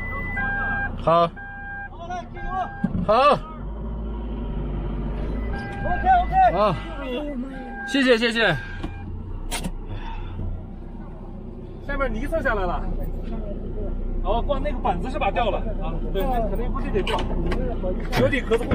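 Men shout loudly outside the vehicle.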